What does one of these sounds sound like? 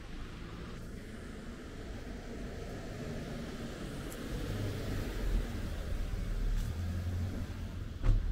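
A car engine hums as it drives up close and passes by.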